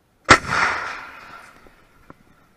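An M777 towed howitzer fires with a heavy boom.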